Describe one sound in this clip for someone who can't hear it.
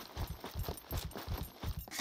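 Footsteps crunch on a gravelly road.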